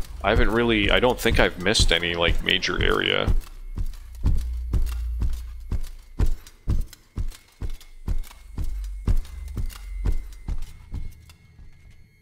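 Heavy footsteps thud at a steady walking pace.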